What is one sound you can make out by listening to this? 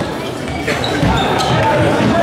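A player dives and thuds onto the floor.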